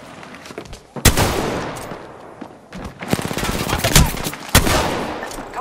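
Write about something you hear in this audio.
Gunshots crack loudly in short bursts.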